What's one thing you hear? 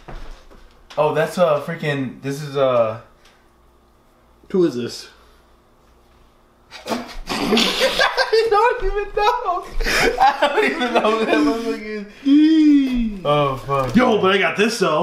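A young man talks and laughs excitedly close by.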